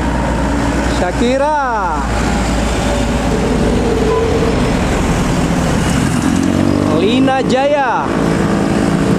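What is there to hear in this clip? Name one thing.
A bus horn plays a quick tune that rises and falls in pitch.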